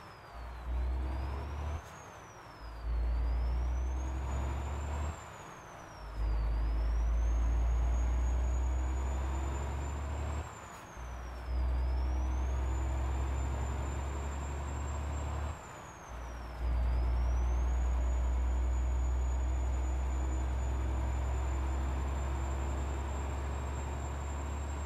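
A truck engine drones and rises in pitch as the truck shifts up through its gears.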